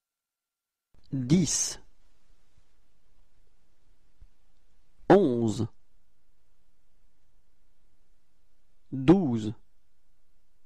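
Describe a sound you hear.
A young man says short words clearly, with long pauses between them.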